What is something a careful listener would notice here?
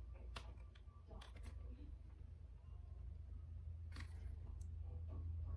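Paper crinkles and rustles in someone's hands.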